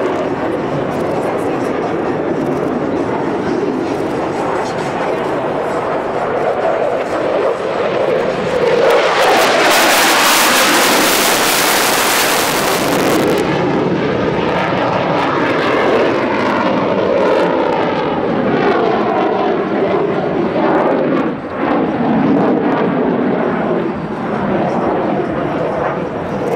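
A jet engine roars loudly overhead, rising and falling in pitch as the plane passes.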